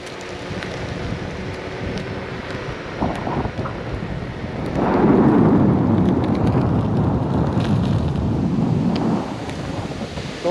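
An electric unicycle rolls and hums over asphalt.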